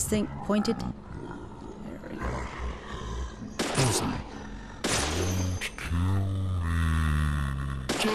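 Pistol shots ring out.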